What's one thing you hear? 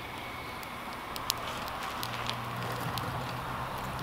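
Twigs clatter as a hand feeds them into a stove.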